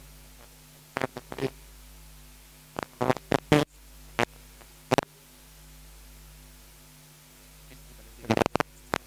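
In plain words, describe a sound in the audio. A man speaks into a microphone in short, loud bursts with long pauses.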